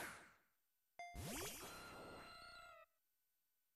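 A winged creature lets out a shrill cry.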